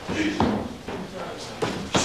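Fists thud against a padded shield.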